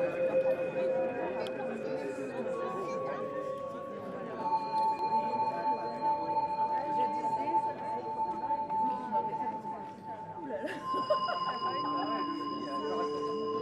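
A woman taps small hand drums.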